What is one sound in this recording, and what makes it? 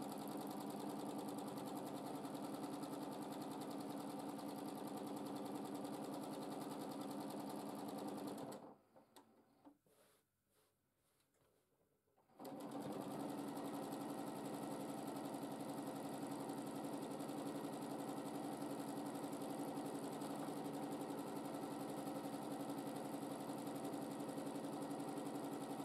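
A sewing machine hums and stitches steadily, stopping briefly before starting again.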